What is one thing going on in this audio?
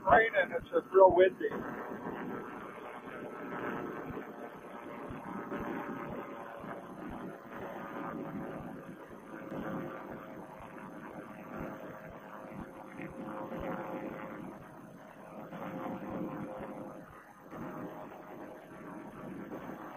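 Wind rushes loudly past in flight.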